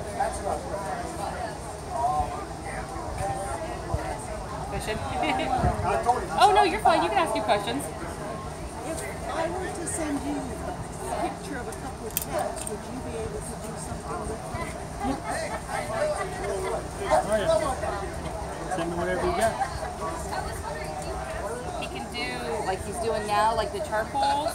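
An older woman talks with animation close by.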